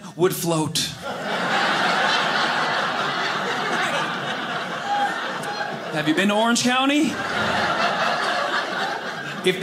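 An audience laughs and applauds.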